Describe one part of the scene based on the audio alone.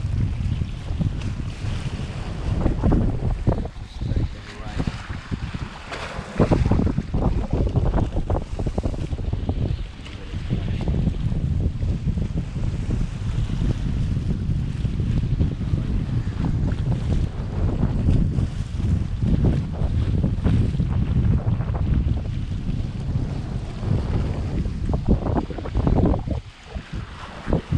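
Waves splash against rocks close by.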